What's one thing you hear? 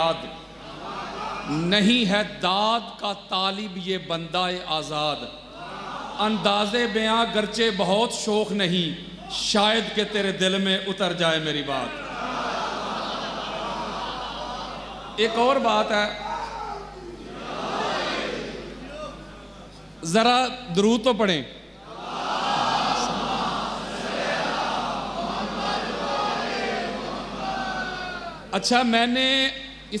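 A man speaks forcefully through a loudspeaker, his voice rising and falling.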